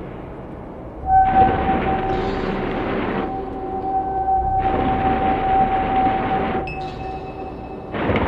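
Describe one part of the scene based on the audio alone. An electronic instrument holds a steady, clear tone.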